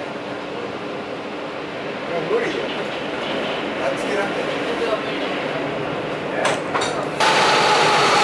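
A train rumbles along the tracks inside a tunnel.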